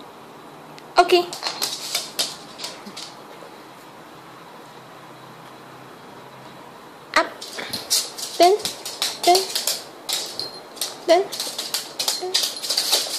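A small dog barks sharply and repeatedly, close by.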